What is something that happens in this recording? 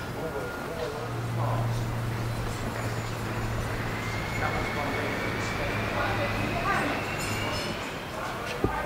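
A car engine rumbles deeply and pulls away slowly.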